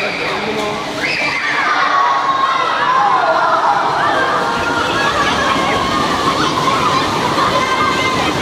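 Water splashes loudly as children kick at the pool's edge.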